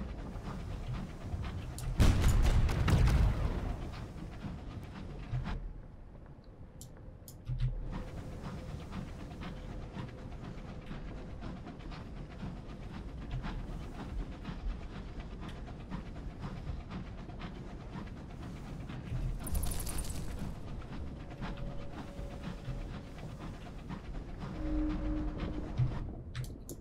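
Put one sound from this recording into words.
A small submarine hums steadily as it moves through deep water.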